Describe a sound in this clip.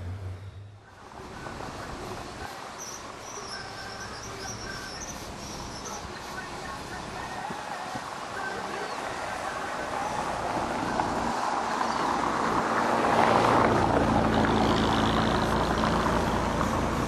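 Wind blows outdoors, growing stronger.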